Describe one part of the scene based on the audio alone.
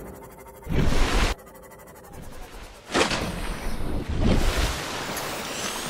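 Water splashes and gurgles.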